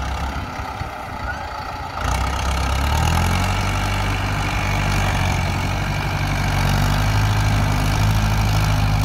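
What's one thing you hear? A tractor's diesel engine rumbles steadily and grows louder.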